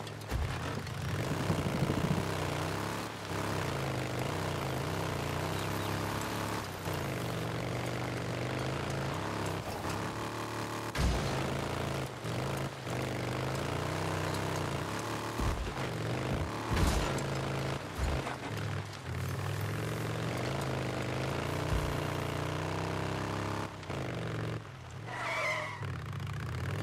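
A motorcycle engine hums steadily and revs up and down as it rides along.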